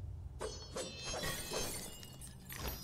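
Pottery smashes and shatters into pieces.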